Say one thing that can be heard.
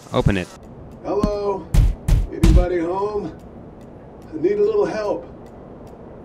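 A man calls out loudly.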